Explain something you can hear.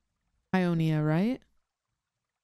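A young woman speaks briefly into a close microphone with animation.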